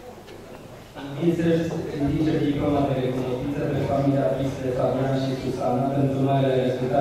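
An elderly man speaks steadily into a microphone, heard through loudspeakers in an echoing hall.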